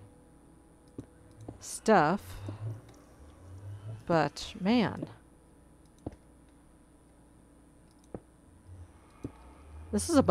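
Stone blocks are set down with short, soft knocks.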